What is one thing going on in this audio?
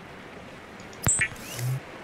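Electricity crackles and fizzes in short bursts.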